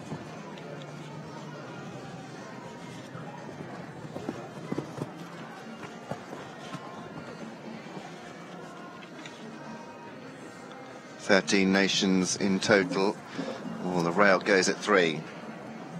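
A horse canters on soft sand with dull hoofbeats.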